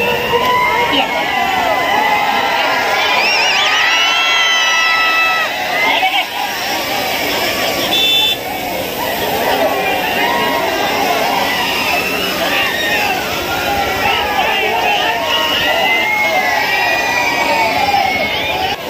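A large crowd cheers and shouts loudly outdoors.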